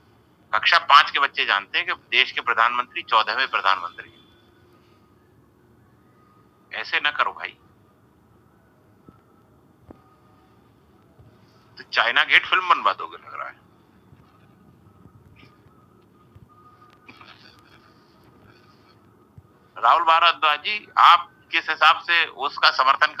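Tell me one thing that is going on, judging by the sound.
A man speaks in bursts over an online call.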